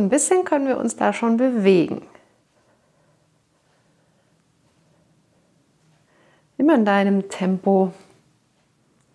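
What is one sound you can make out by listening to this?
A woman speaks calmly and clearly into a close microphone, in short bursts.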